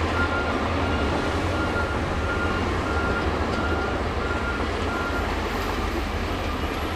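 A bulldozer's diesel engine rumbles steadily close by.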